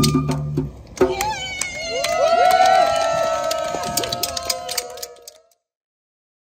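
A group of young women and men whoop and cheer.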